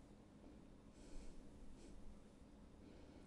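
A brush softly strokes across paper.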